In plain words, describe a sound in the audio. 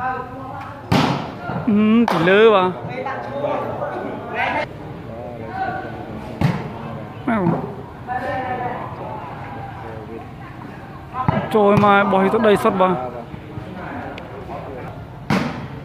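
A ball thuds sharply off a player's foot.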